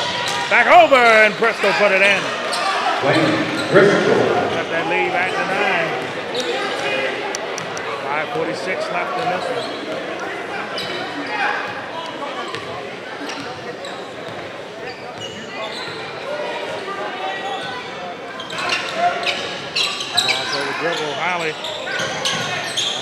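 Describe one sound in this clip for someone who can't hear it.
Spectators in an echoing gym cheer and shout.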